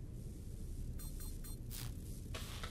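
Keys click as fingers type on a keyboard.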